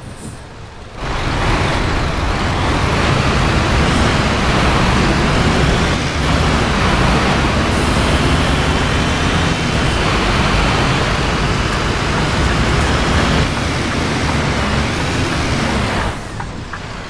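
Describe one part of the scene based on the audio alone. Rain patters heavily on a windscreen.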